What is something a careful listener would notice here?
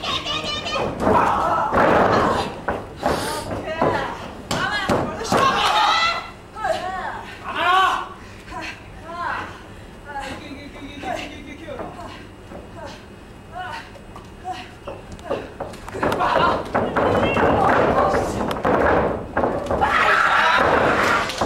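A crowd cheers and roars loudly in a large hall.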